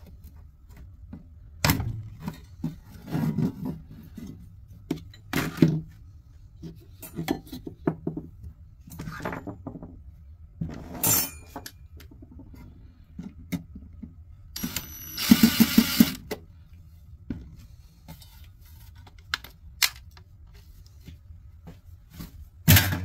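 Metal parts clank and rattle as they are handled.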